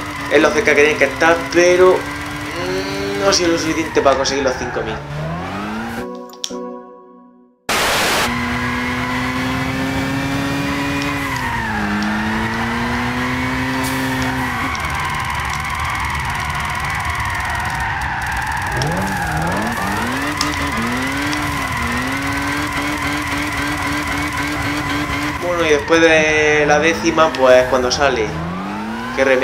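A racing car engine roars, its revs rising and falling as it shifts gears.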